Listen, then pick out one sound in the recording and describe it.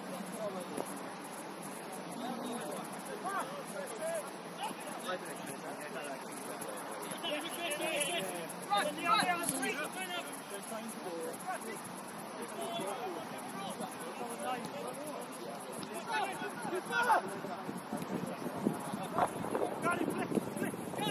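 Men shout to each other across an open field, heard from a distance.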